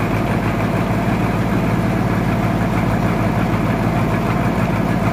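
A heavy sawmill machine hums and rumbles steadily.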